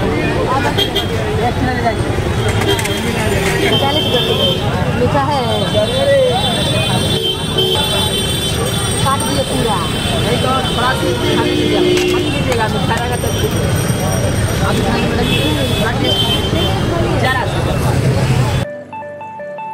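A busy crowd chatters outdoors.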